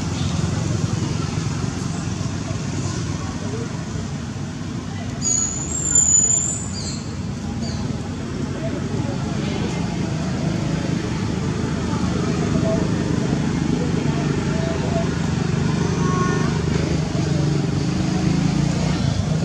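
A macaque chews food.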